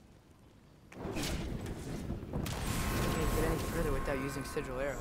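A fiery blast bursts with a loud whoosh and crackle.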